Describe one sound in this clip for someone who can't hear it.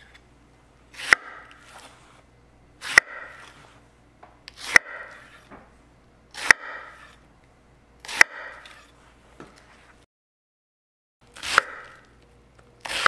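A knife chops through an onion onto a wooden board with sharp, regular thuds.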